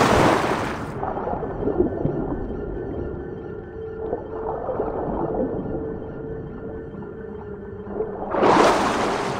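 A muffled underwater rumble drones on.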